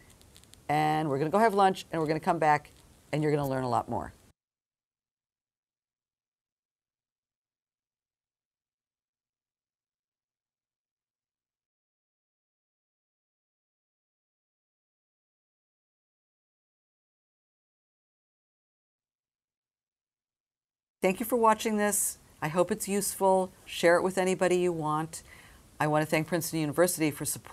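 An older woman speaks calmly and clearly into a nearby microphone.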